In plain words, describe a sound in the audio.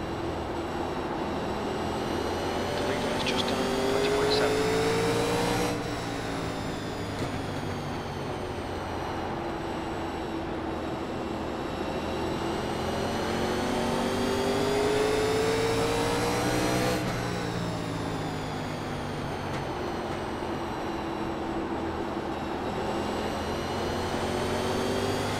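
A race car engine roars steadily, rising in pitch as it speeds up and dropping as it shifts gear.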